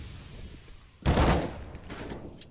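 An assault rifle fires a short burst.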